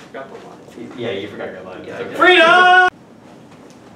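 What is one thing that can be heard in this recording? A young person shouts angrily, close by.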